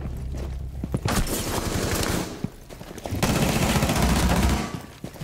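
Gunshots fire in rapid, loud bursts.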